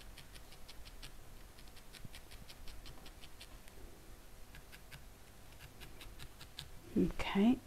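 A felting needle pokes rapidly into wool with soft, quick taps.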